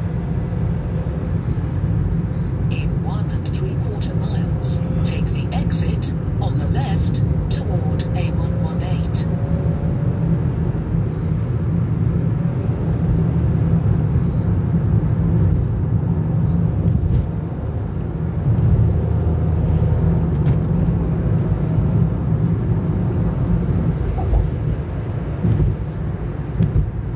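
A car engine hums steadily and its tyres roar on the road, heard from inside the car.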